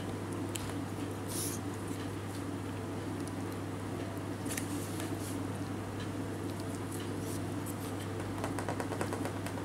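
A kitten licks and laps food off a spoon with small wet clicks.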